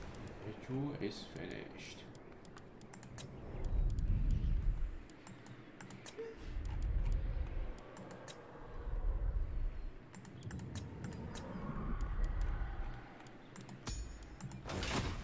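Soft clicks sound as menu buttons are pressed.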